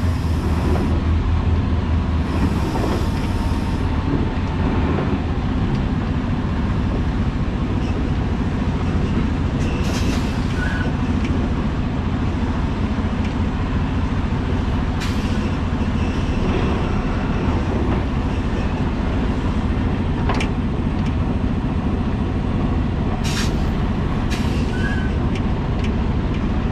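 A truck engine rumbles steadily close by.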